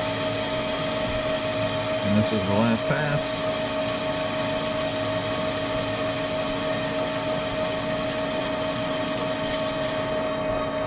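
A CNC lathe's spindle spins with a steady whine.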